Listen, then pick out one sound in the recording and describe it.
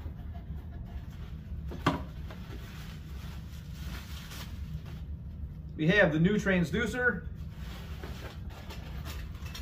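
Paper and packaging rustle in a cardboard box.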